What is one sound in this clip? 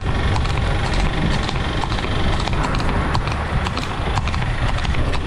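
A horse's hooves clop steadily on asphalt.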